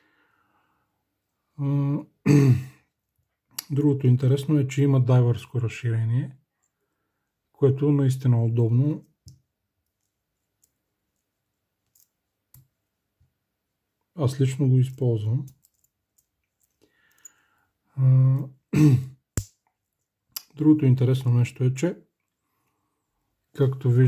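Metal watch bracelet links clink softly as they are handled.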